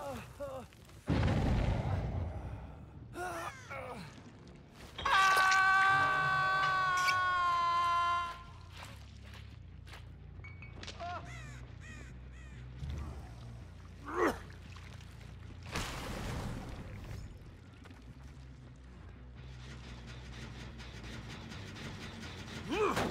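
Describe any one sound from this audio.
A middle-aged man talks into a microphone with animation.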